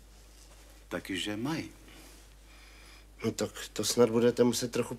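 Another middle-aged man answers quietly nearby.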